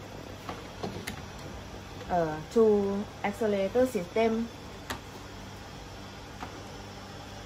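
Plastic parts click and tap as a hand handles cables.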